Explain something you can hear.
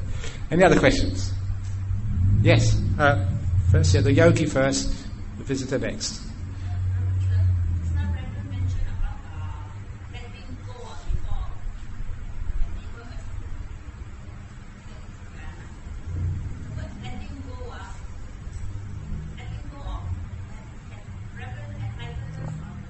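A middle-aged man speaks calmly and warmly.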